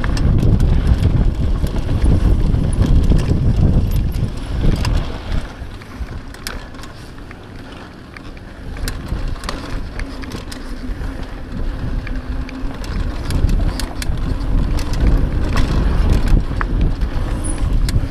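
Wind rushes loudly past a moving bicycle outdoors.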